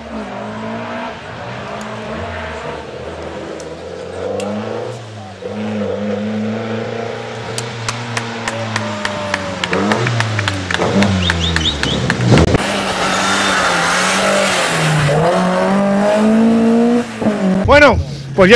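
A rally car engine revs hard and roars past, its pitch rising and falling.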